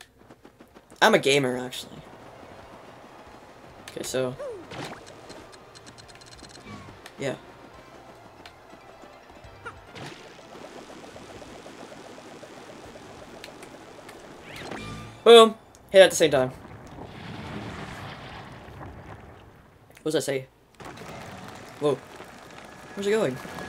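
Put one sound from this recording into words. Cartoonish game sound effects pop and chirp now and then.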